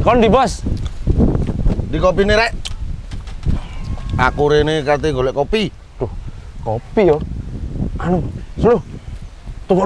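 A man calls out loudly and asks questions with animation.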